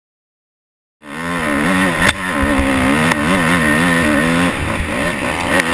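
A dirt bike engine roars close by, its pitch rising and falling as it climbs.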